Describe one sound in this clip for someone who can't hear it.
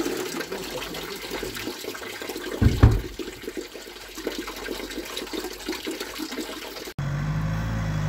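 Water trickles into a plastic bottle.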